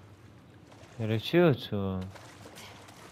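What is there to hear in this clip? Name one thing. A young woman breathes hard while swimming.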